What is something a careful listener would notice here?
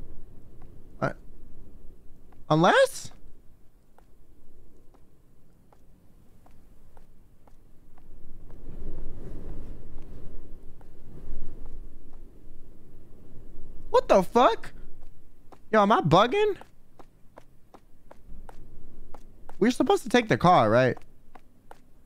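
A young woman speaks with animation into a close microphone, in a high voice.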